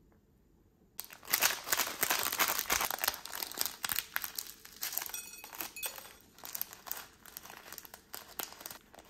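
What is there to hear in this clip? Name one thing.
A plastic snack wrapper crinkles and rustles in gloved hands.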